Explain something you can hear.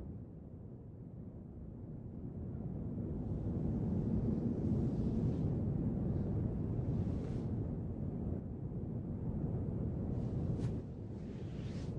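Bedding rustles as a young woman shifts in bed.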